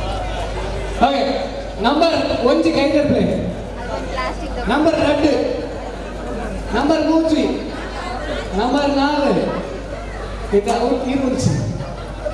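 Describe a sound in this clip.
A group of adults chants loudly in short repeated calls.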